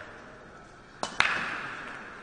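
A cue ball smashes hard into a rack of pool balls.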